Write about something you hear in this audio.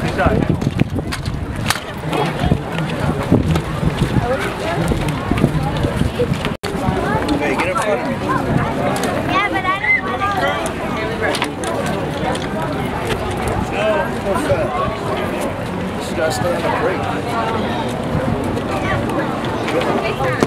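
A crowd of people chatter outdoors nearby.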